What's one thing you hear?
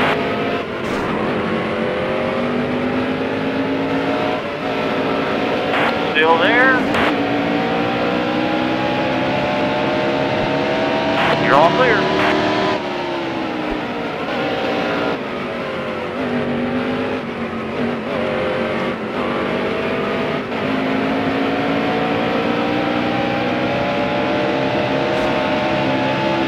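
A race car engine roars steadily, rising and falling in pitch as it speeds up and slows down.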